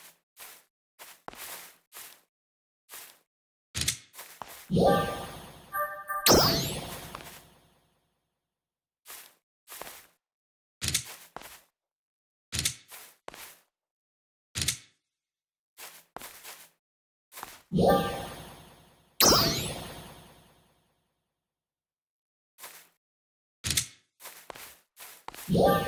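Footsteps tap on a hard floor at an even pace.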